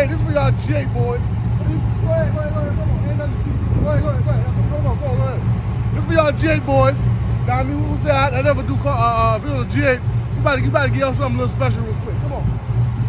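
A young man talks loudly and with animation, close by.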